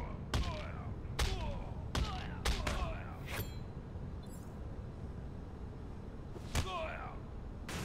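Punches and blows land in quick, sharp hits with ringing echoes.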